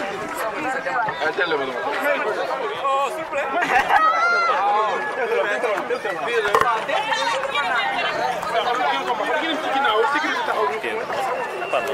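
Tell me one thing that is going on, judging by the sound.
A crowd of young men talk and shout over one another close by, outdoors.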